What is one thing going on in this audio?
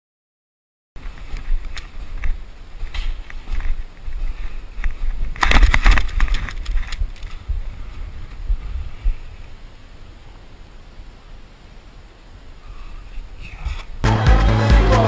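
A snowboard scrapes and hisses over snow.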